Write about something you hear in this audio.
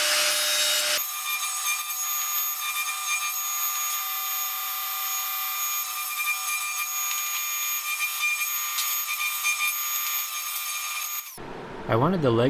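A table saw hums with a steady high whine.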